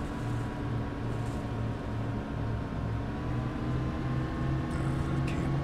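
Tyres roll on an asphalt road.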